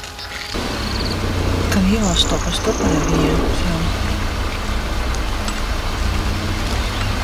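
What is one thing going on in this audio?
Elephants tread heavily through brush.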